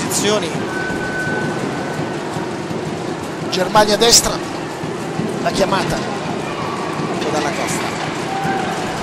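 A large indoor crowd cheers and chatters steadily, echoing in a big hall.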